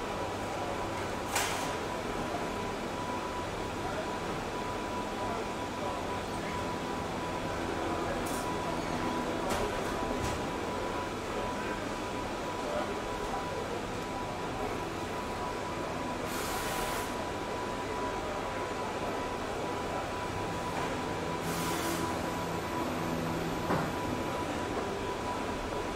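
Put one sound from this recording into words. A race car engine idles with a steady low rumble.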